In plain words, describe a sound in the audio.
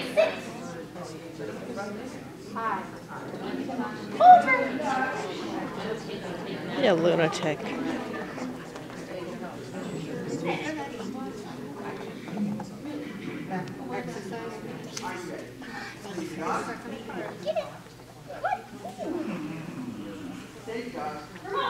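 Many people murmur in a large echoing hall.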